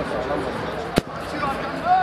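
A football thuds as a player kicks it.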